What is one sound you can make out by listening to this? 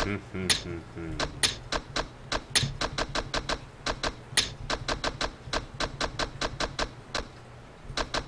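A menu ticks rapidly as items are scrolled.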